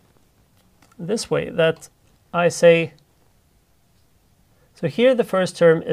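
A middle-aged man speaks calmly and clearly into a close microphone, in short phrases with pauses.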